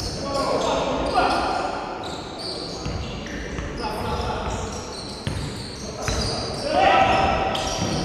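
A basketball bounces on a wooden court in an echoing hall.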